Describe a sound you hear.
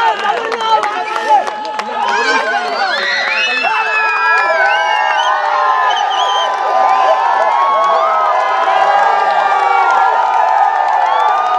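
A crowd of men cheers and whistles.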